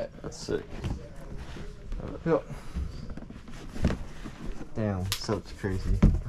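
A box rustles and scrapes as it is handled.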